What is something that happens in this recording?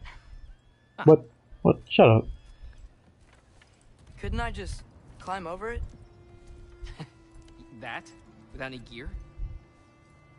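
A young man answers calmly, close by.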